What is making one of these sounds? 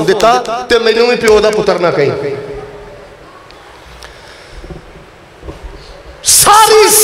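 A middle-aged man preaches loudly and with feeling into a microphone, his voice echoing through loudspeakers.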